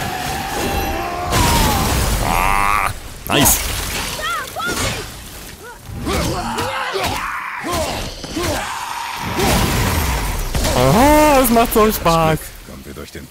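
Fiery explosions burst with a loud whoosh.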